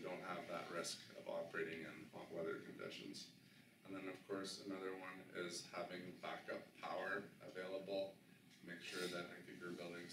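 A man speaks calmly to an audience in a small, slightly echoing room.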